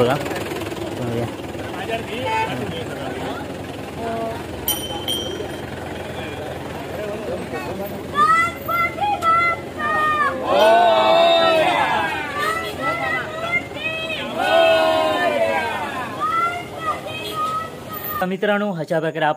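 A crowd of people chant and sing loudly outdoors.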